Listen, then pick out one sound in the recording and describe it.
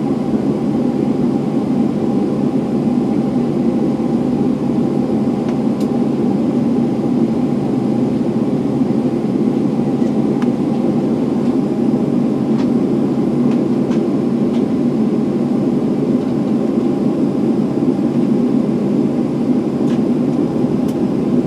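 Jet engines hum and roar steadily inside an aircraft cabin as it taxis.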